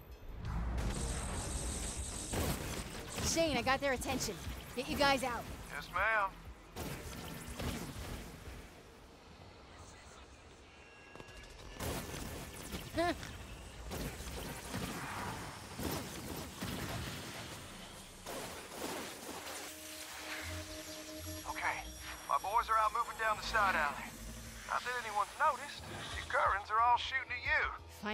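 Energy weapons fire in sharp bursts and crackles.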